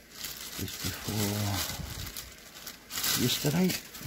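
A plastic bread bag crinkles as it is handled.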